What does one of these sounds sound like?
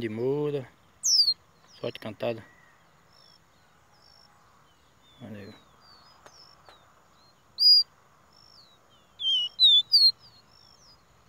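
A small bird chirps and whistles in short bright bursts close by.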